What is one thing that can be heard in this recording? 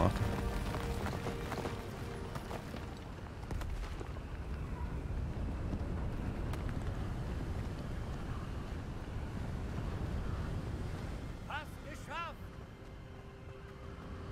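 Waves crash against rocks below.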